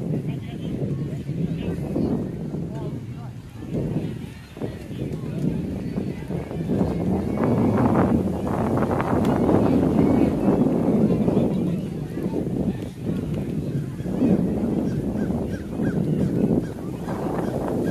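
Children and adults chatter and call out nearby.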